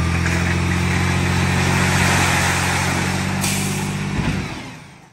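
A load of wood chips slides and pours out of a dump truck bed.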